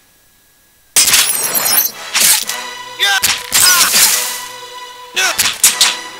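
Weapons clash and strike in a fierce fight.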